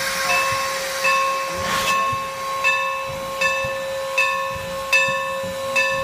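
A steam locomotive chuffs rhythmically as it pulls away.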